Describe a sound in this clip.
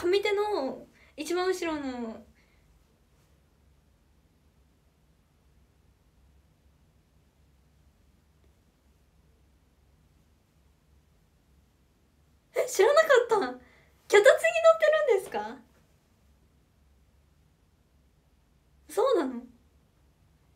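A young woman speaks close by in short, lively bursts.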